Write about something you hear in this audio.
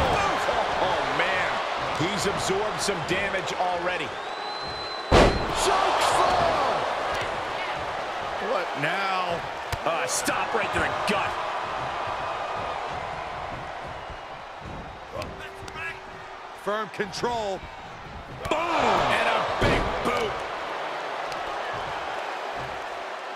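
A large crowd cheers and roars throughout an echoing arena.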